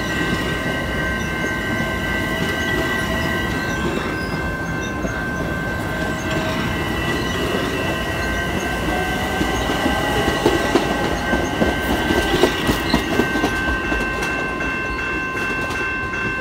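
A train's wheels screech and hum with steady high tones.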